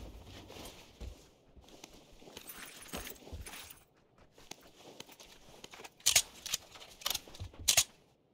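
Footsteps thump on a wooden floor in a game.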